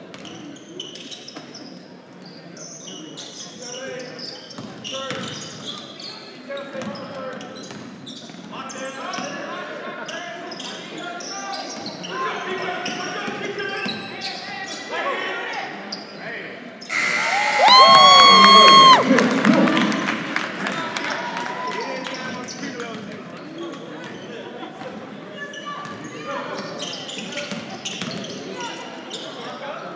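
A basketball thumps as it bounces on the court.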